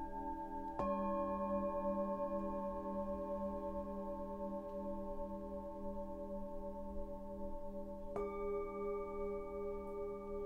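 Metal singing bowls ring out with long, steady humming tones.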